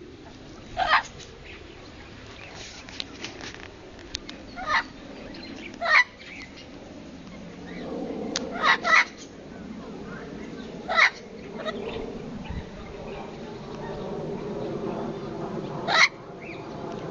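A parrot squawks loudly in short, sharp calls.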